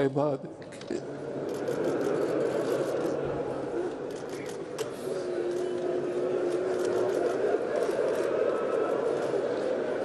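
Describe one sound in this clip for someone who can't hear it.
A crowd of men weeps and sobs.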